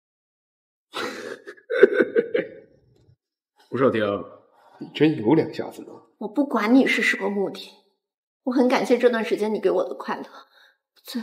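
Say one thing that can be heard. Another young man speaks with animation, close by.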